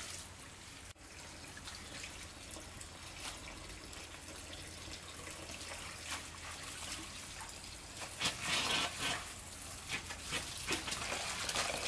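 Leafy greens rustle and splash as they are washed in water.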